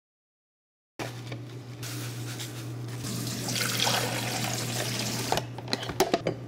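Water pours into a coffee maker with a rushing hiss.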